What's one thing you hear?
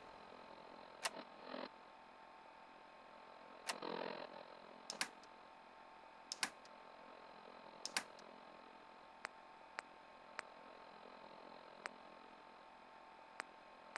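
Menu clicks tick sharply at intervals.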